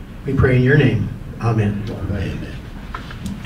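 An elderly man speaks briefly into a microphone, heard over loudspeakers in a large room.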